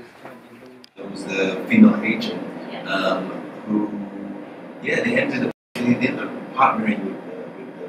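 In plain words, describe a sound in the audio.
A young man speaks calmly in a quiet room.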